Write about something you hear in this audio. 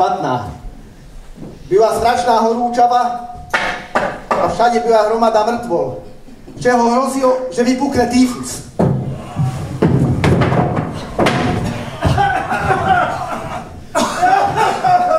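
Several men sing together through microphones in a reverberant hall.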